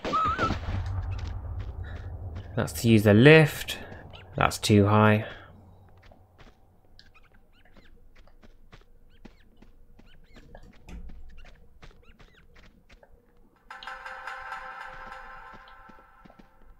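Footsteps patter quickly on a wooden floor.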